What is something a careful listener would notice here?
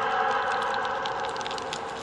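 A torch flame crackles close by.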